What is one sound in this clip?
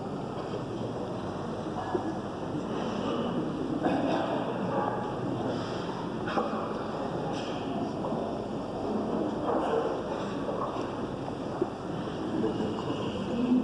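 Men murmur and chant softly in a reverberant hall.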